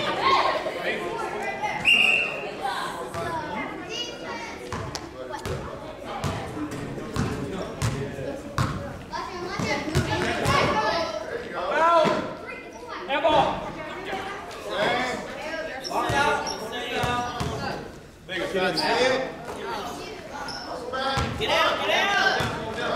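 Children shout and cheer nearby.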